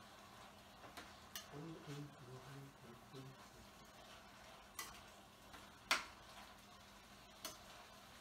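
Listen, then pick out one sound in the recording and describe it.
A metal utensil clinks against a frying pan.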